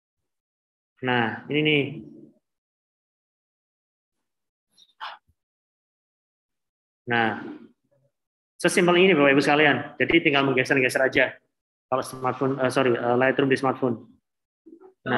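A man speaks calmly over an online call, pausing now and then.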